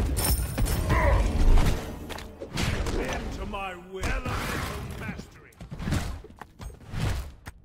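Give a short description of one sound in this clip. Loud game blasts and impacts burst and rumble.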